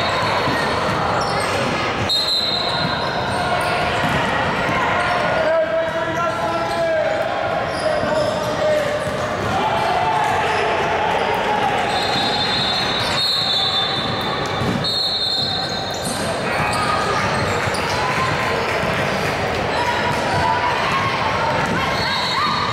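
Young women shout and call out to each other across an echoing hall.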